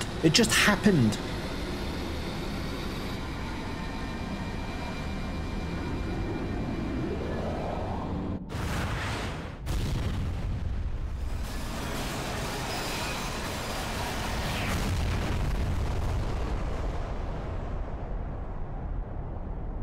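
Explosions rumble deeply.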